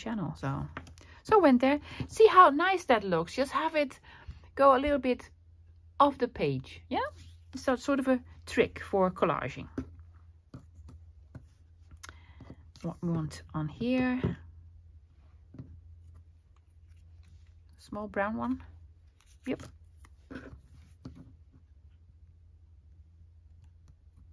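Cardboard pieces rustle and tap softly as they are handled on a table.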